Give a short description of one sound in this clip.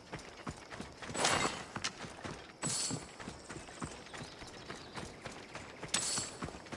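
Footsteps run quickly over dry dirt.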